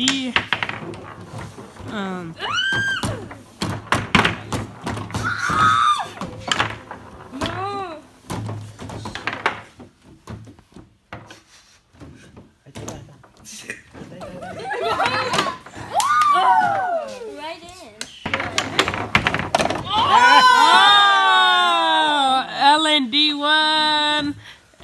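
Young women and a girl shout and laugh excitedly close by.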